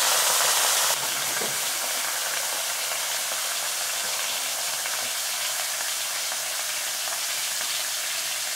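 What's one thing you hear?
Broth hisses and bubbles steadily in a hot pan.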